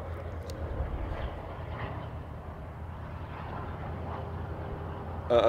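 Wind roars steadily past a small aircraft as it dives.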